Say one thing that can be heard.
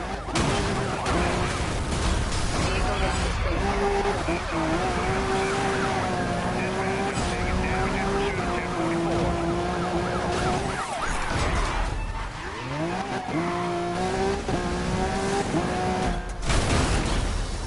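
Metal crashes and crunches in a collision.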